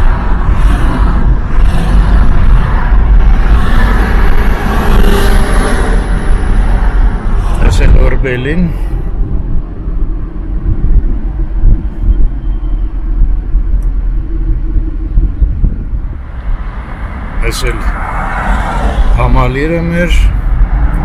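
A car engine hums and tyres rumble steadily on the road from inside the car.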